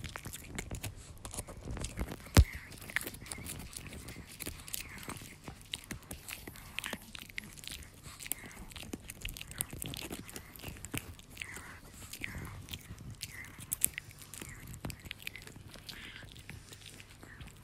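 A chihuahua chews and gnaws on a hard treat stick.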